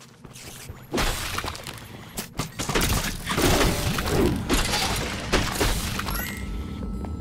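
Game combat sounds clash and burst as enemies are struck.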